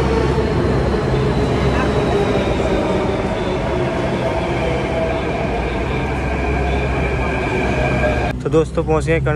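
A metro train rushes past close by with a loud rumbling roar and a whining hum that slowly falls in pitch.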